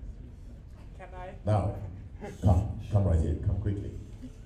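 A man speaks with animation through a microphone over loudspeakers in a large echoing hall.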